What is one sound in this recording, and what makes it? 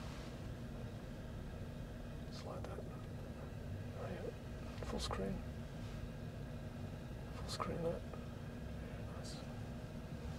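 A car's low hum drones steadily inside the cabin.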